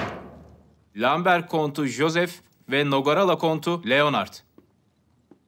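A young man speaks loudly and firmly.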